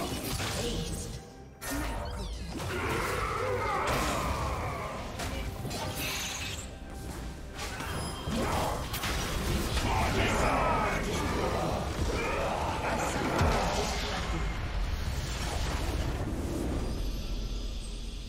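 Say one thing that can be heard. Game battle effects crackle, clash and whoosh in quick bursts.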